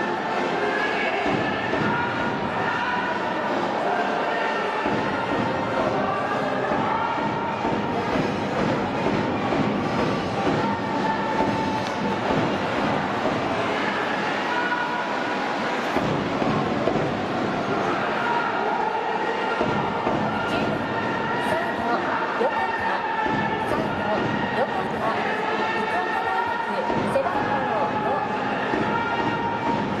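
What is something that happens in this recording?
A large stadium crowd cheers and chants steadily.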